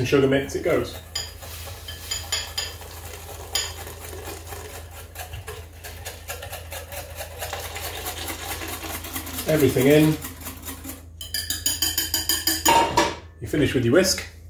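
A whisk clinks rapidly against a bowl.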